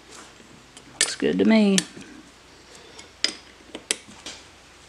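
Small metal discs click and clink against a metal plate.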